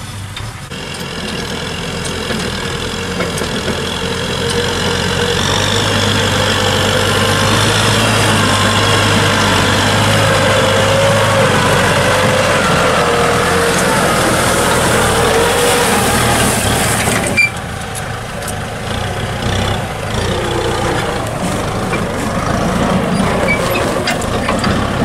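A diesel tractor engine drones under load, pulling a disc plough.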